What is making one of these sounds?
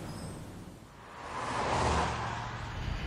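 A car drives past close by with a rushing whoosh.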